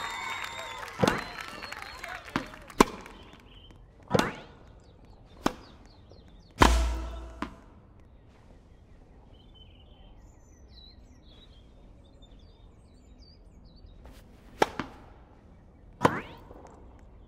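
A tennis ball is hit back and forth with sharp knocks.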